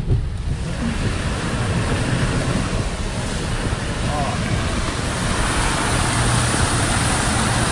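Heavy rain pours down and drums on a car window.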